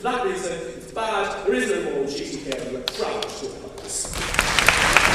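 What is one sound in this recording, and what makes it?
A young man speaks loudly and with passion into a microphone in an echoing hall.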